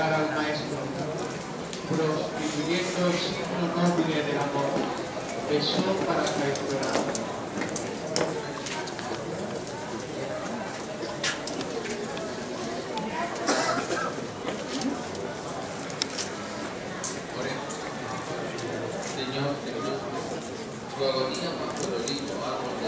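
Footsteps shuffle slowly on stone paving.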